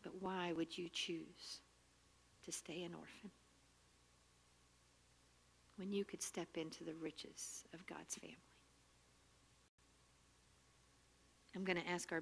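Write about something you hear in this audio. A woman speaks calmly into a microphone in short phrases with pauses.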